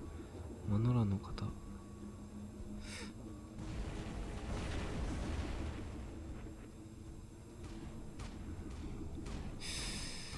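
Heavy metallic footsteps of a giant robot stomp along.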